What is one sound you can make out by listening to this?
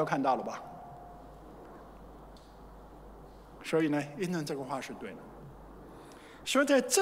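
An older man speaks calmly into a microphone in a large echoing hall, with pauses.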